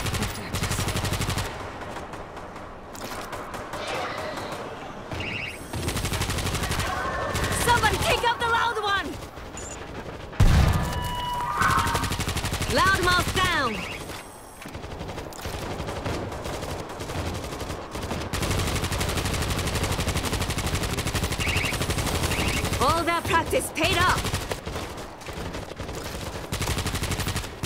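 Rapid gunfire rattles in repeated bursts.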